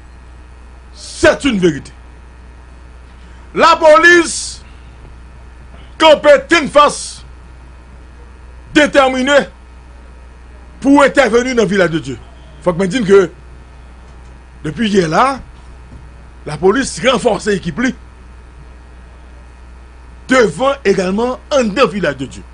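A man speaks forcefully into a close microphone, in short bursts with pauses.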